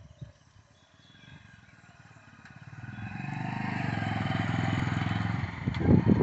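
A motorcycle engine putters closer and grows louder.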